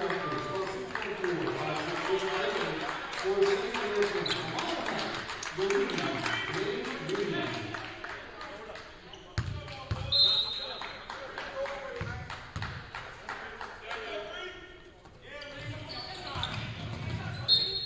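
Sneakers squeak on a hard court in an echoing gym.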